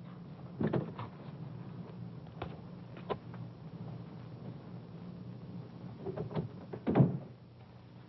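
A man knocks on a wooden door.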